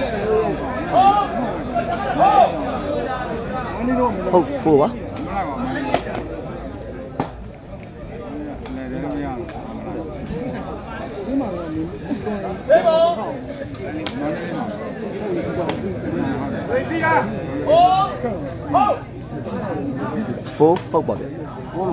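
Men in the crowd cheer and call out loudly now and then.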